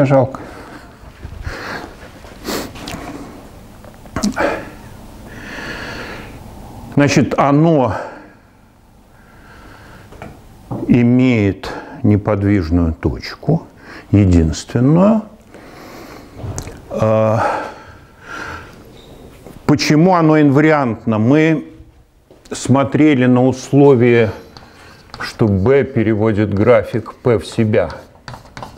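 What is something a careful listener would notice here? An elderly man lectures calmly in a room with a slight echo.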